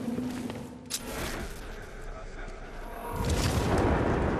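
Wind rushes loudly past during a fast dive.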